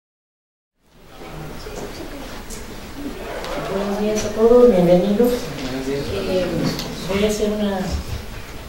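A middle-aged woman speaks calmly into a microphone, heard through a loudspeaker in a hall.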